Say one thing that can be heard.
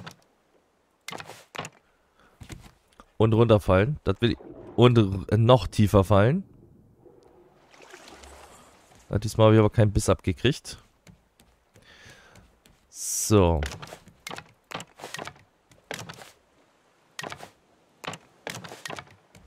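A hammer knocks on wooden planks.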